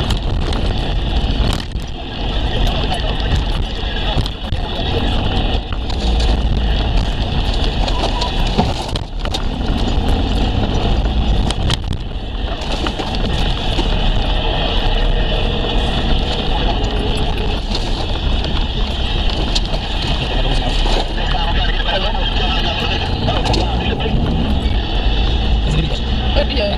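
Tyres crunch and rumble over a bumpy dirt track.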